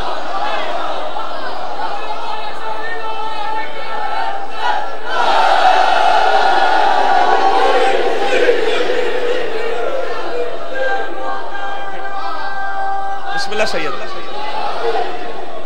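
A large crowd of men chants loudly together.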